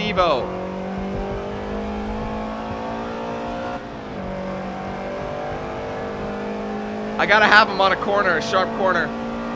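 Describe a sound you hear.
A car engine hums steadily, rising in pitch as it speeds up.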